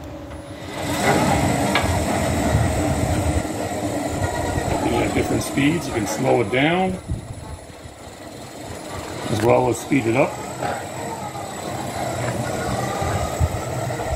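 A sawmill engine runs with a steady rumbling hum.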